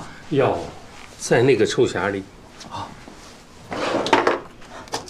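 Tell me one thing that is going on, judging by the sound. An elderly man answers weakly, close by.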